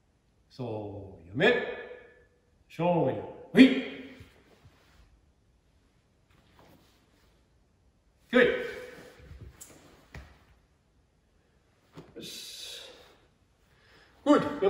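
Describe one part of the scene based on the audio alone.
A man calls out short loud commands in an echoing hall.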